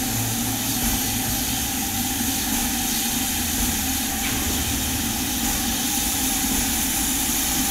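A steam locomotive hisses steadily close by.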